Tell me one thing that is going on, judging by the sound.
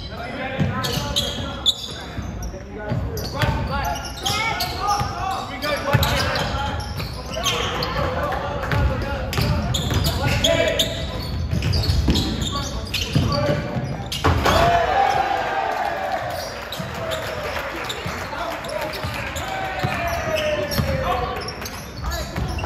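Young players shout to each other across the court.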